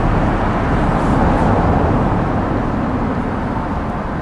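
A bus engine rumbles steadily nearby.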